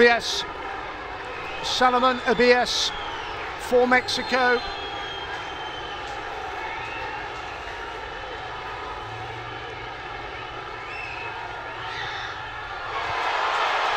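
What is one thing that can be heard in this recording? A large stadium crowd murmurs steadily outdoors.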